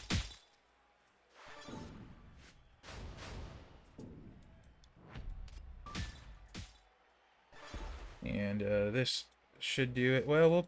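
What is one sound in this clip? Bursts of video game sound effects play.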